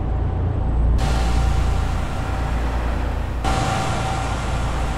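A truck rolls past on a highway with a low rumble.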